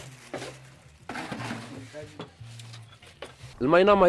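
A knife cuts through roasted meat.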